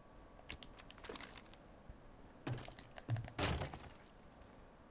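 A rifle butt smashes through a wooden wall with loud cracking blows.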